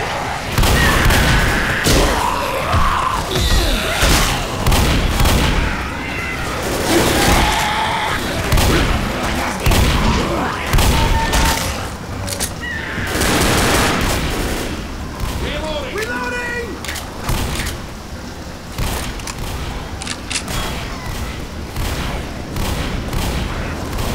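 Guns fire in rapid loud bursts.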